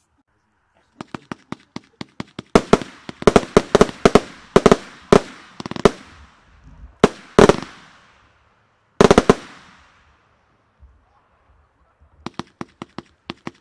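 A fireworks compound cake fires shots in rapid succession.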